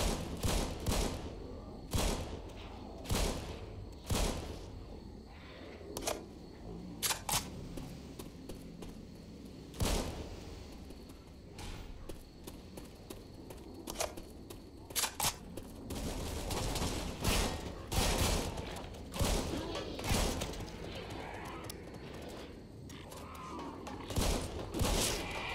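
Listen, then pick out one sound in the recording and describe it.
Gunshots crack in short bursts, with a ringing echo.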